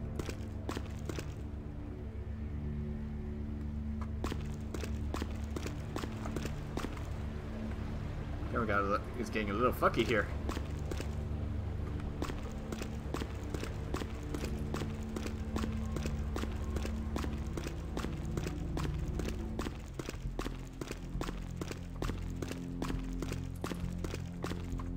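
Footsteps tap steadily on a hard floor in a large echoing space.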